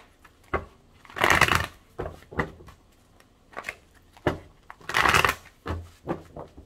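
A deck of cards is shuffled with quick riffling bursts.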